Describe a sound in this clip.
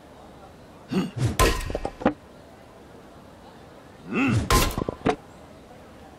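An axe chops into a log and splits it with a sharp crack.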